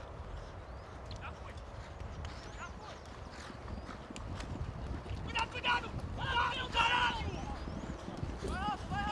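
Horses' hooves thud faintly on grass in the distance.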